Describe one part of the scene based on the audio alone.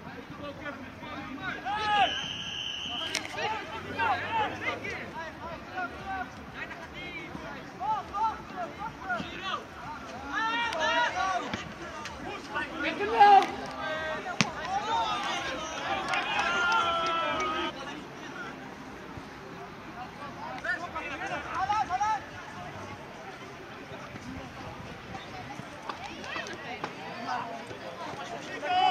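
Young players shout and call to each other on an open outdoor field.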